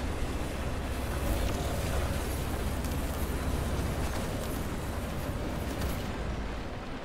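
Electricity crackles and hisses in a rough, steady burst.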